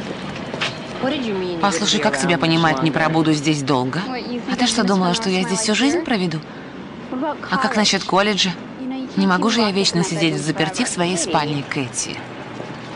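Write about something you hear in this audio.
A woman speaks earnestly and close by.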